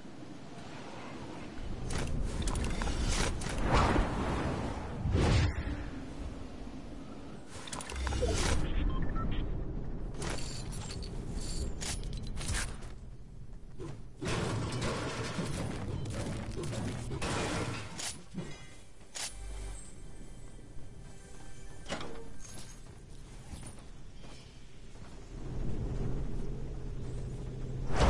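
A pickaxe strikes a wall with sharp knocks.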